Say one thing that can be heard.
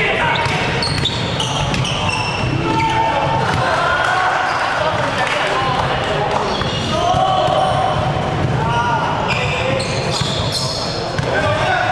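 A basketball thumps as it bounces on the floor.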